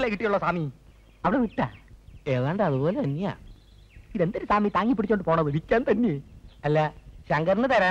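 A second man answers a man, close by.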